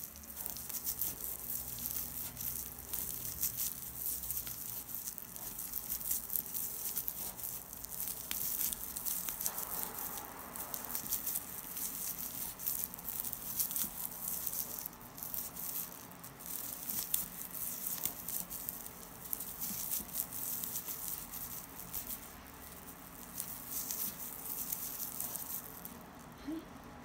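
Stiff paper yarn rustles and crackles as a crochet hook works through it.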